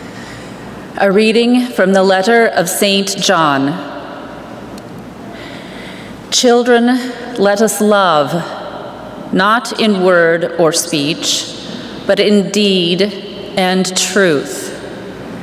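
A woman speaks calmly into a microphone in a large, echoing hall.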